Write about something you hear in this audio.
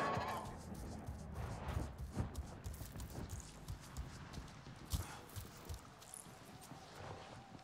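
Footsteps thud softly.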